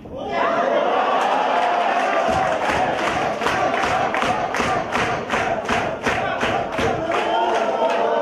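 A crowd claps in a fast steady rhythm.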